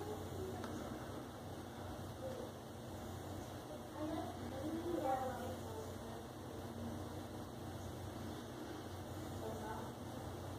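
Hands rub lotion over a bald scalp.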